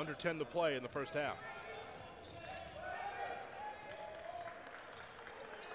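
A basketball bounces repeatedly on a hardwood floor.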